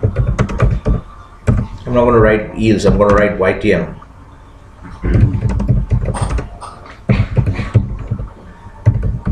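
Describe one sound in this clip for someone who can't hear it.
Keys clack on a computer keyboard.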